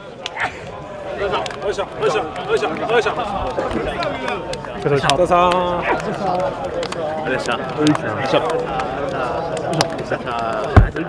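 Men talk and call out cheerfully close by, outdoors.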